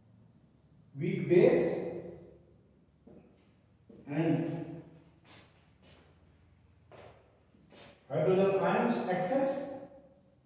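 An elderly man speaks calmly in bursts, explaining.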